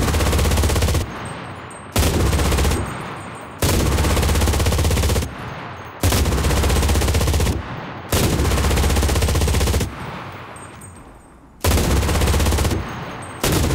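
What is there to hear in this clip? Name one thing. Machine gun shots echo and fade after each burst.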